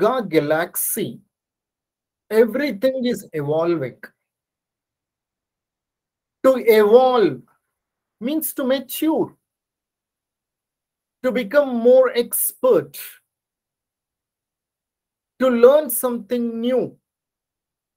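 A middle-aged man speaks calmly in short phrases, heard through an online call.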